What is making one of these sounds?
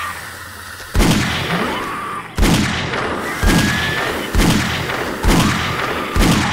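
A revolver fires loud gunshots one after another.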